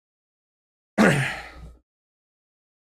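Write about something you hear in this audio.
A man laughs over an online call.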